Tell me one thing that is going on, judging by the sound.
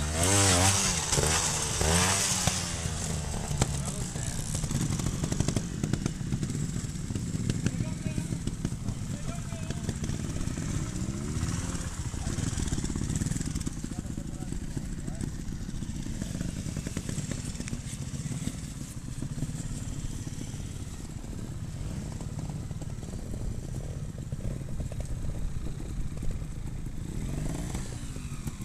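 A trials motorbike engine revs in short bursts close by.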